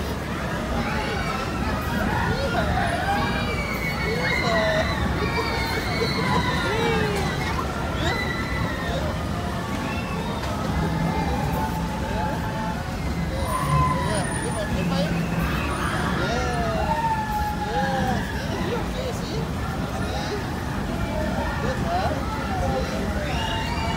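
Young children shriek and squeal excitedly close by.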